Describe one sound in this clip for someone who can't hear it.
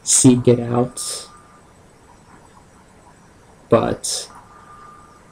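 A young man speaks close to the microphone in short bursts.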